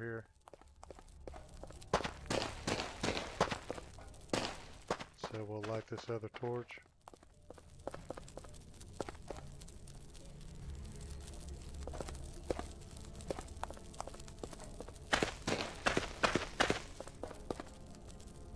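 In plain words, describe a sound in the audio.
Footsteps slap quickly on a stone floor.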